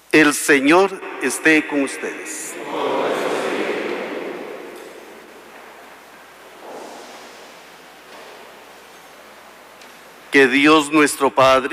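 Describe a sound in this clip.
A man chants into a microphone in a large echoing hall.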